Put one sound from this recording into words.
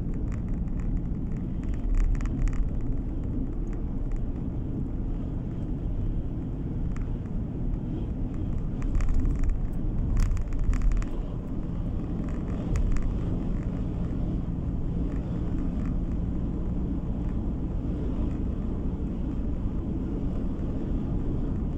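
A car engine hums steadily as tyres roll over a road.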